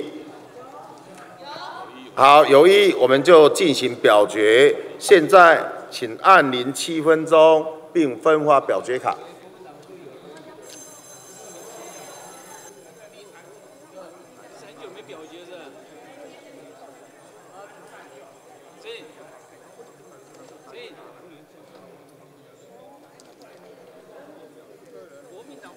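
A crowd of people murmurs and talks in a large hall.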